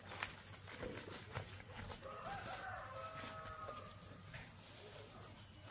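Footsteps rustle through leafy plants.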